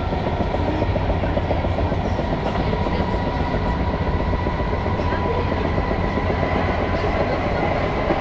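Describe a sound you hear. Rain patters softly against a window.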